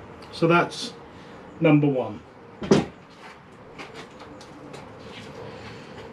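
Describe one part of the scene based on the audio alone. A bowl knocks on a wooden workbench.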